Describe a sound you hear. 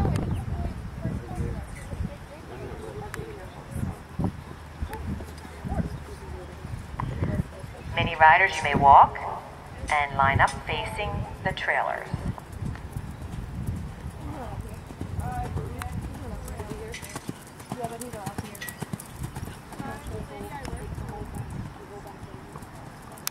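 A horse's hooves thud on soft sand at a canter.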